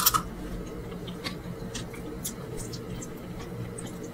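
Fingers tear and squish soft cooked meat close up.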